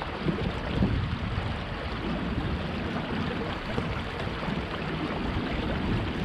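Wind blows outdoors, rumbling steadily.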